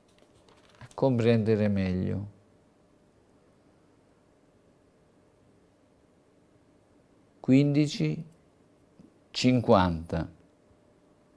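An elderly man reads aloud slowly through a microphone, with long pauses.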